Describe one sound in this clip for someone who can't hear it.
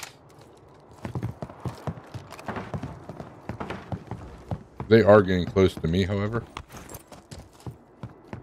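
Footsteps thud quickly on a wooden walkway.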